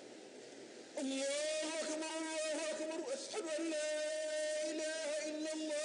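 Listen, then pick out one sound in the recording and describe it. A man chants loudly.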